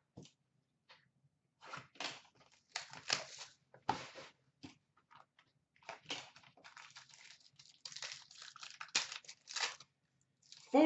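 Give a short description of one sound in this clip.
Foil card packs crinkle and rustle in handling.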